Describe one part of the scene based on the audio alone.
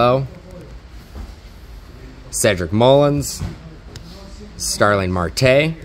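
Plastic card sleeves rustle softly between fingers.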